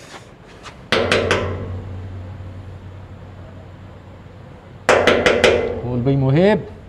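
A man knocks on a metal gate.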